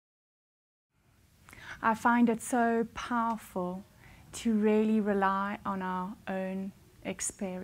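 A woman speaks calmly and warmly into a close microphone.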